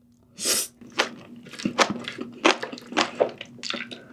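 A young woman chews wetly close to a microphone.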